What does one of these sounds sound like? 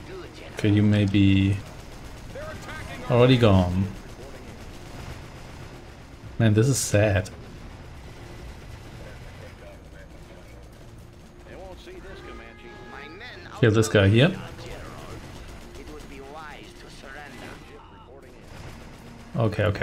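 Guns fire and shells explode in a distant battle.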